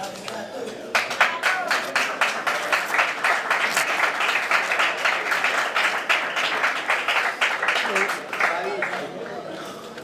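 A crowd claps and cheers loudly.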